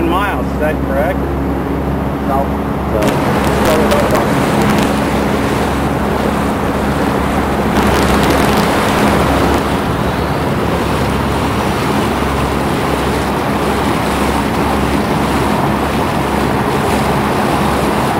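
Wind blasts across the microphone outdoors.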